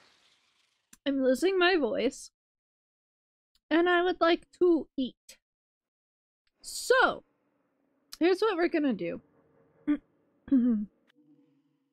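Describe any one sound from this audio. A young woman speaks with animation into a microphone, in short high-pitched bursts.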